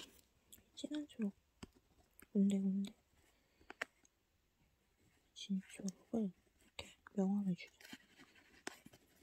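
A pastel crayon scratches softly across rough paper.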